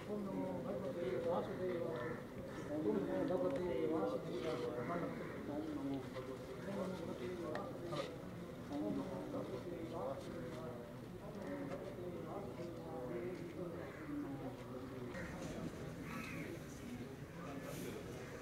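A group of men chants and murmurs nearby.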